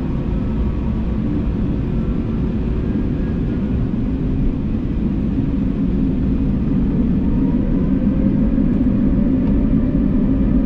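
Tyres rumble on the runway.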